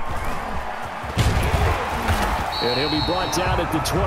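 Football players collide in a tackle.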